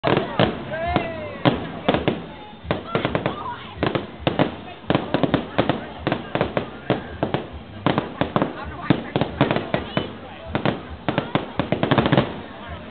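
Fireworks explode with loud, rapid bangs and crackles.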